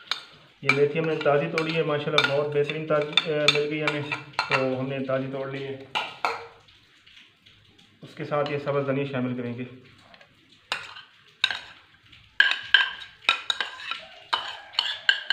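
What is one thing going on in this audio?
A metal spoon scrapes against a bowl.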